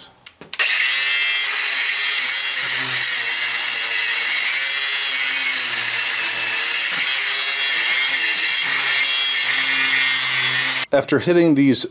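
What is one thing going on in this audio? A cordless angle grinder whines loudly as it grinds metal.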